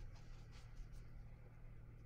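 A wet brush dabs and swirls in a paint box.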